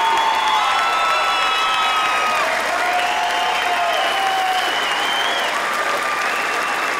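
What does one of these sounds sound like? A large crowd applauds and cheers in an echoing hall.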